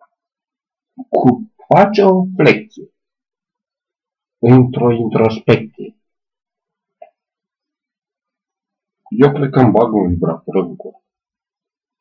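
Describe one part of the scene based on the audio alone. A man speaks close by in short bursts, calmly.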